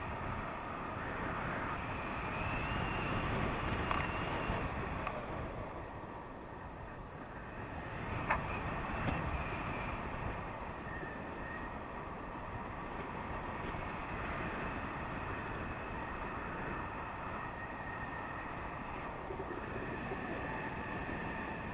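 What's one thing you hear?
Wind rushes steadily past a microphone outdoors.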